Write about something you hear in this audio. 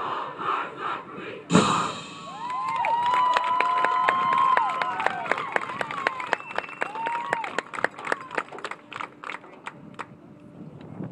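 Drums beat a steady rhythm in a marching band.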